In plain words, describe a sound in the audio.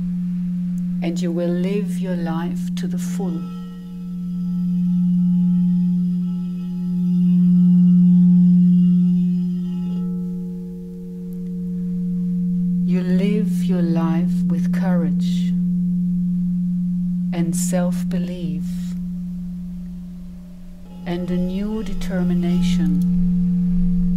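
A woman sings in wavering bursts.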